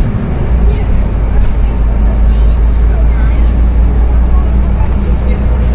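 The bus body rattles and creaks over the road.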